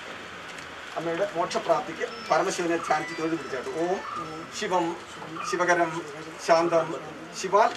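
A man recites a prayer in a loud chanting voice nearby.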